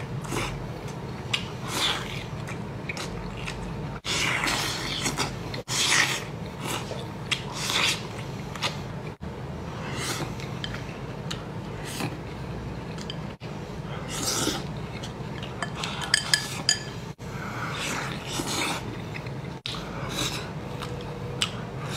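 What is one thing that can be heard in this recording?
A man chews and slurps food noisily up close.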